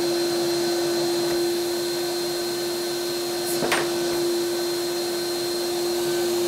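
A dust extractor hums steadily.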